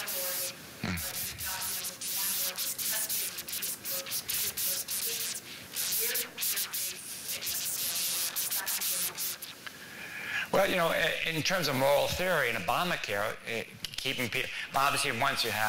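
An elderly man speaks calmly through a microphone in a large room.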